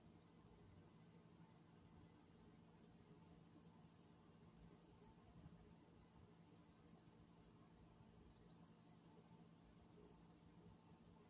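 An outdoor air conditioning unit hums steadily with a low motor drone.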